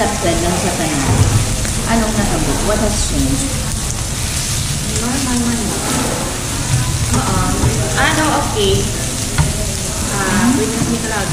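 A second young woman answers calmly, close by.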